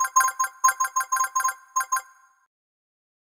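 Quick bright chimes ring in a rapid run.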